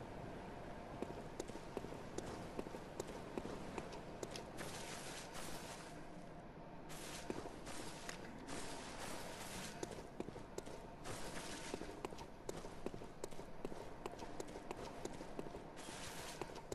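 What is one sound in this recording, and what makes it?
Footsteps crunch quickly over gravel and grass.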